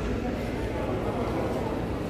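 Suitcase wheels roll across a tiled floor.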